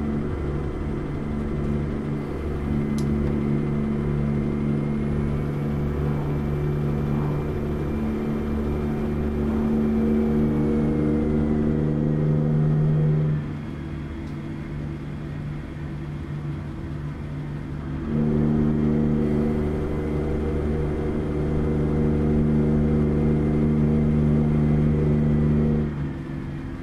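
A heavy truck engine drones steadily from inside the cab, rising and easing off as the throttle changes.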